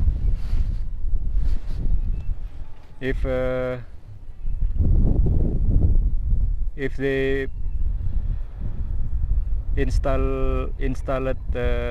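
Wind blows strongly outdoors, rumbling against the microphone.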